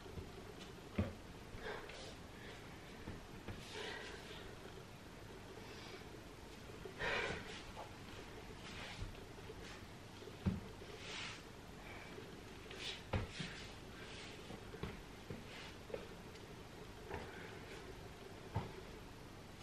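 Soft thumps sound as a body shifts on a floor mat.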